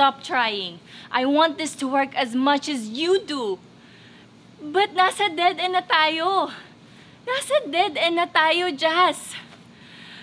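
A young woman speaks close by, loudly and angrily.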